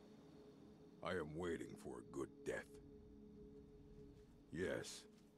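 An older man speaks slowly in a deep, gravelly voice.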